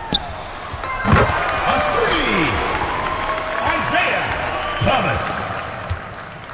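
A crowd cheers and murmurs in an echoing arena.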